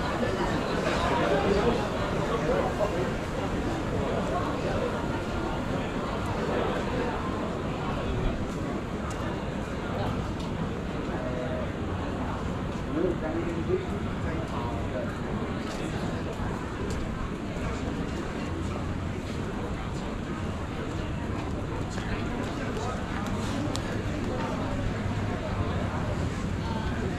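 Footsteps tap on paving outdoors.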